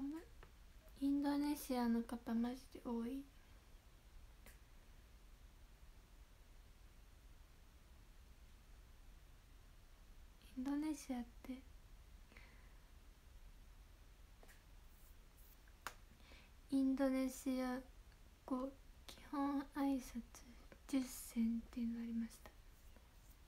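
A young woman speaks softly and close to a microphone, in short bursts with pauses.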